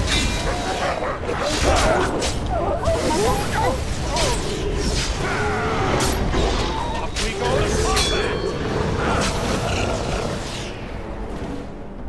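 A beast snarls and growls during the fight.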